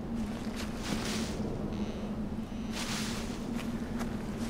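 Dry grass rustles against the legs of someone walking.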